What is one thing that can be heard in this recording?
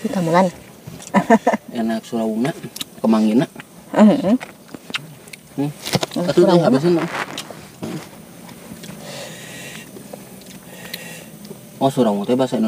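A young man talks calmly up close.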